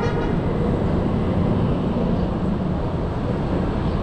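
A delivery truck's engine rumbles close by.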